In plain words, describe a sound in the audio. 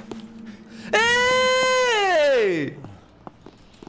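A young man shouts a long drawn-out cry close to a microphone.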